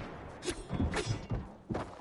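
A pickaxe strikes objects with sharp, cracking hits.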